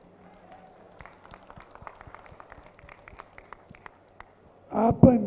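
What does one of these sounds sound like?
A large crowd claps.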